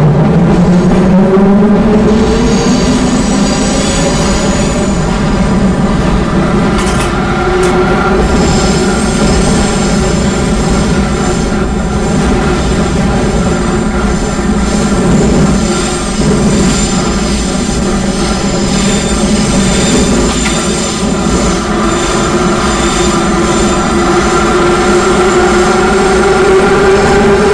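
A train's electric motor whines, its pitch rising and falling with speed.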